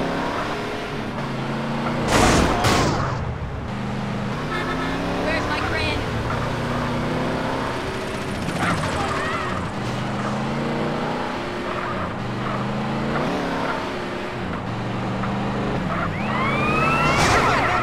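A sports car engine roars as the car speeds along.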